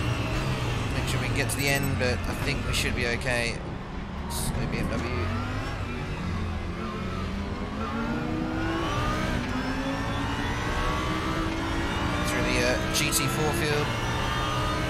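Tyres screech in the corners.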